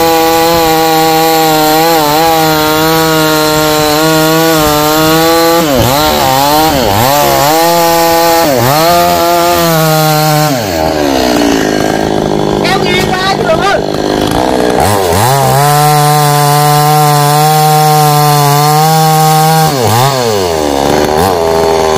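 A chainsaw engine buzzes loudly close by, revving up and down now and then.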